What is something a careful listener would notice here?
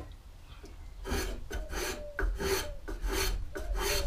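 A hand tool shaves curls off a piece of wood in quick scraping strokes.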